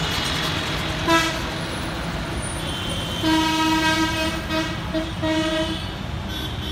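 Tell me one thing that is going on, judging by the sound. Vehicle horns honk.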